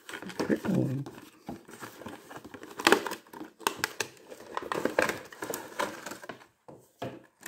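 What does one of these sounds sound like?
Cardboard rustles and scrapes as a box is opened by hand.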